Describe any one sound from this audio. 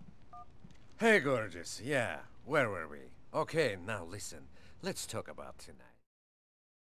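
A man talks on a phone with animation, close by.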